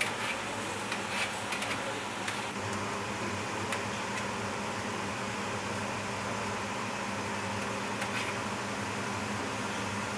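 Broth sloshes as a ladle stirs it.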